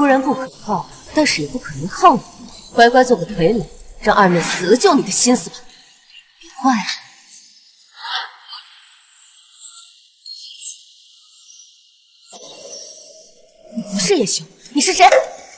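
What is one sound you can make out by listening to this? A young woman speaks tensely and close by.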